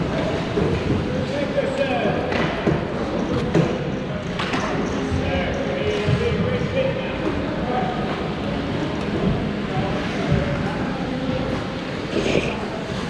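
Hockey sticks clack against pucks and the ice, echoing in a large hall.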